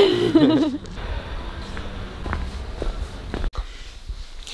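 Footsteps scuff on a hard walkway outdoors.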